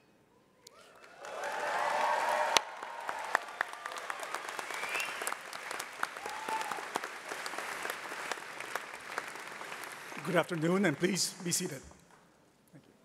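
A crowd applauds loudly in a large hall.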